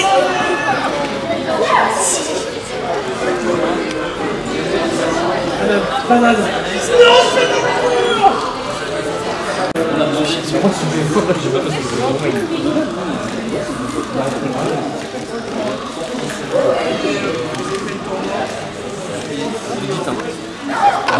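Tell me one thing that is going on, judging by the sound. Many voices murmur in a large echoing hall.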